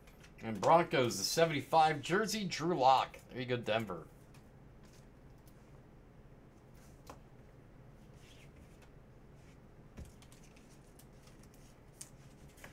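Trading cards rustle and click as hands shuffle them.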